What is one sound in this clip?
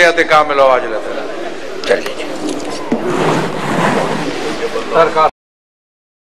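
A crowd of men murmurs and talks close by.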